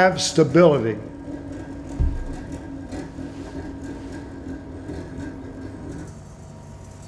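A spinning gyroscope hums steadily, then stops.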